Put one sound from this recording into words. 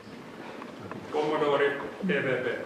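A young man speaks clearly in an echoing hall.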